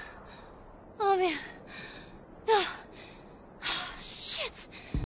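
A young girl speaks in a weak, strained voice.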